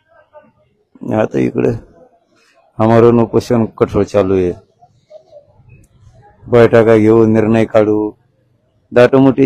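A man speaks slowly and wearily, close to a microphone.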